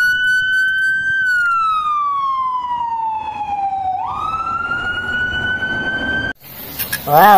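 A siren wails, rising and falling in pitch.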